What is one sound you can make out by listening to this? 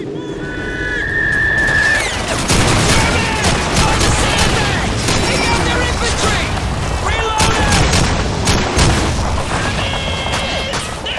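Rifle shots crack repeatedly.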